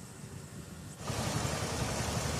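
Floodwater rushes and churns loudly over a weir.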